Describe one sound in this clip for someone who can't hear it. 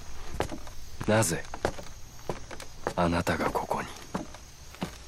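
A man asks a question sharply.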